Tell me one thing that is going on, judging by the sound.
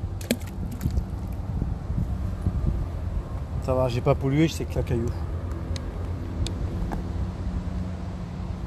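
Water ripples and laps gently close by.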